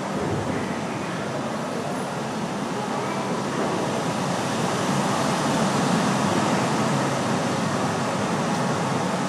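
Cloth swishes as it is waved through the air in a large echoing hall.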